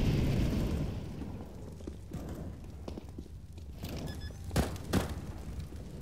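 Flames crackle and roar nearby.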